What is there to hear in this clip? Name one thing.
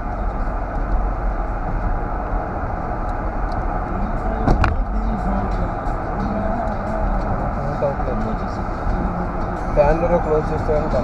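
A car's engine and tyres rumble steadily while driving along a road.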